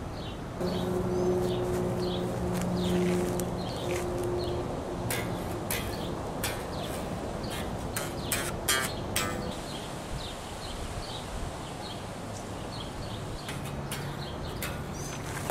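A bass guitar plays low notes outdoors.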